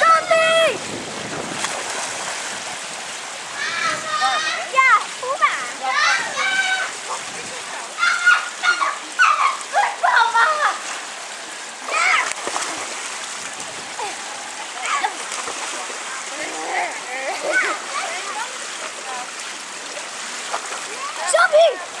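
Water splashes as children swim and slide into a pool.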